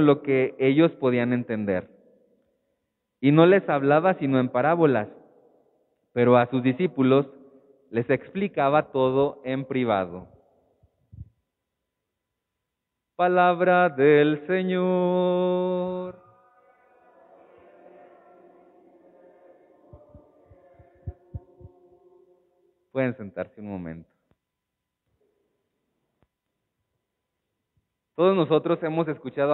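A man speaks calmly through a microphone, his voice carrying in a large echoing room.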